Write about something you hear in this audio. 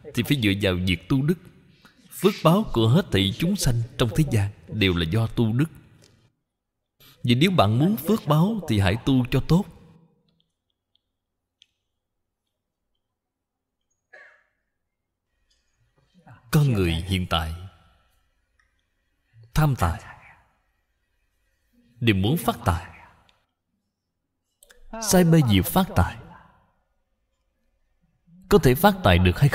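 An elderly man speaks calmly and slowly into a microphone, pausing between phrases.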